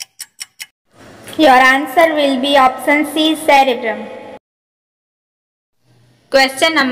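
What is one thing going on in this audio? A young woman speaks clearly and calmly, close to a microphone.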